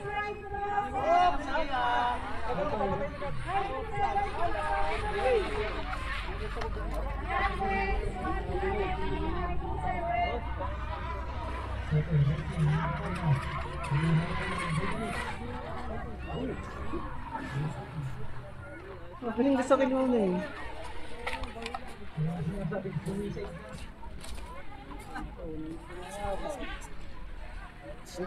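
Adults and children chatter close by.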